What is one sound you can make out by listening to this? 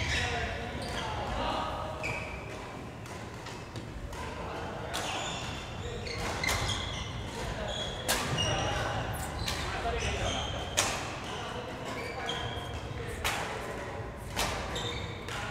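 Shoes squeak sharply on a wooden floor.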